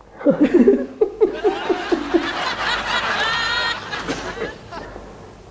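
A young woman laughs brightly close by.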